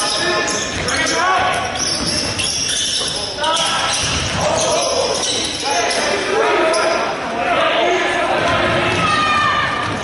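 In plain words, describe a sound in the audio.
A basketball bounces on the court with a hollow thud.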